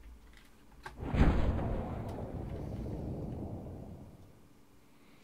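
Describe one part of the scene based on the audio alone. A parachute opens with a rushing whoosh.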